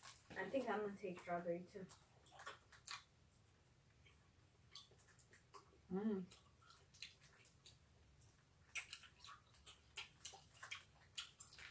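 Candy wrappers crinkle and rustle as children unwrap sweets.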